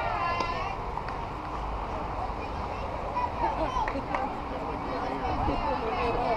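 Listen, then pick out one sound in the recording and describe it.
Young women call out and cheer nearby outdoors.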